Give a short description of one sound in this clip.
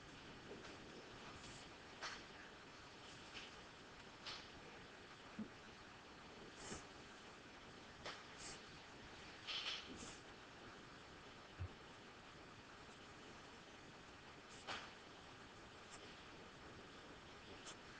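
A marker pen squeaks and scratches on paper in short strokes.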